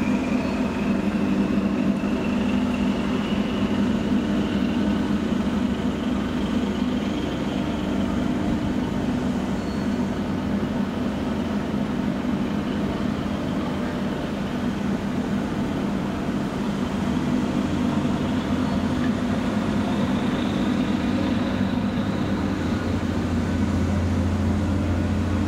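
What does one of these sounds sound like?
A ship's engine drones steadily nearby.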